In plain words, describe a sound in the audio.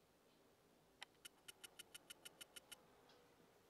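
A rapid run of ticks sounds as coins are counted up.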